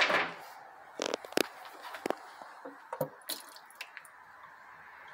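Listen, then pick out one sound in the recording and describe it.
Hands knock and scrape against a metal pan.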